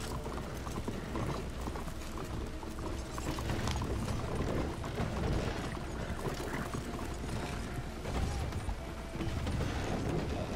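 Horse hooves clop on a street.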